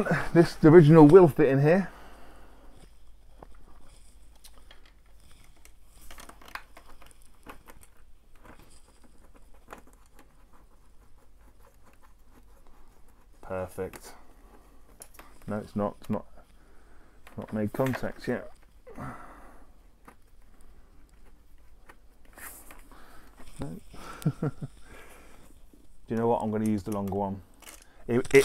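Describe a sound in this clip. Small clicks and taps come from a plastic part being fitted.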